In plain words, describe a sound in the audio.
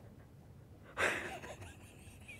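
A middle-aged woman laughs softly.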